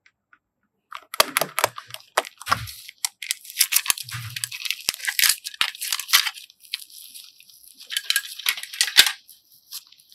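Soft clay squishes and crackles between fingers.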